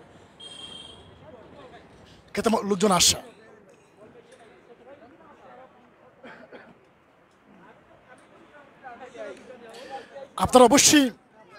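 A crowd of men chatters in the background outdoors.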